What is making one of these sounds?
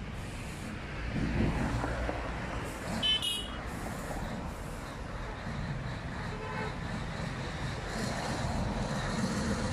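A heavy truck's engine idles and rumbles nearby.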